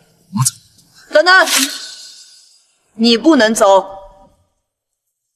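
A young woman speaks firmly and close by.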